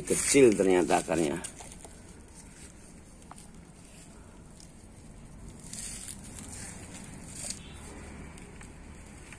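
Soil and roots rustle softly as fingers handle them.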